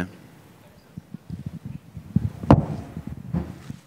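A microphone is knocked and handled with thumps.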